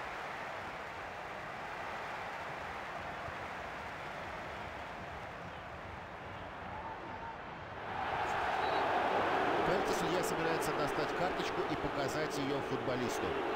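A large stadium crowd roars and swells loudly.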